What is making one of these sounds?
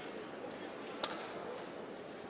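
A badminton racket strikes a shuttlecock with a sharp pop.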